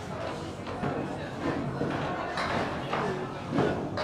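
Bowling pins crash and scatter.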